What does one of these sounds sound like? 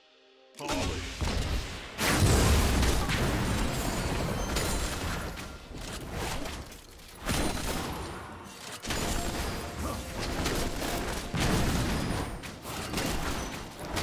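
Video game spells crackle and boom in a fast fight.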